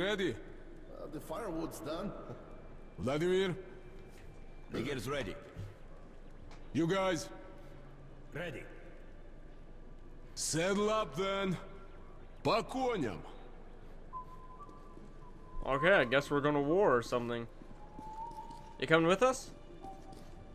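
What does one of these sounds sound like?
A young man talks through a microphone, close up.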